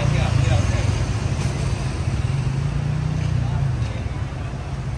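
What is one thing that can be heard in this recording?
A motorbike engine passes close by.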